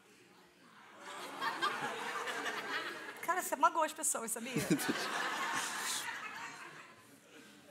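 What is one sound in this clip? An audience laughs and cheers.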